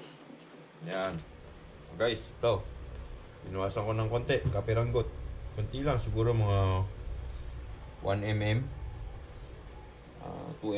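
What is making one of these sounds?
A man speaks casually, close by.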